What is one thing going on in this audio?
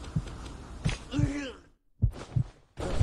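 A game sound effect jingles as the player dies.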